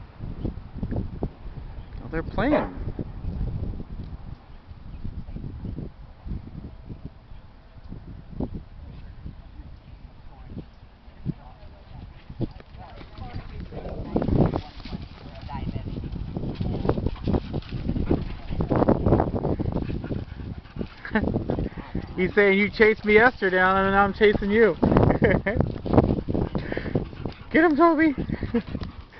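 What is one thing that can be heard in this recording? Dogs scuffle and run over dry leaves and dirt.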